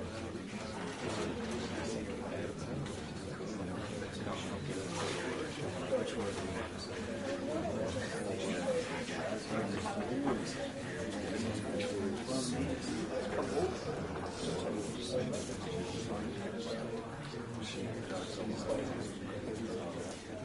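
A man talks casually, close to a microphone.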